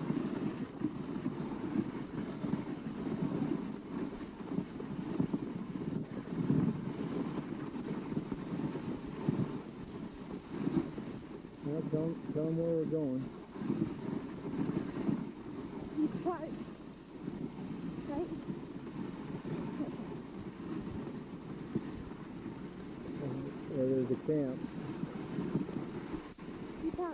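A team of sled dogs pads along on packed snow.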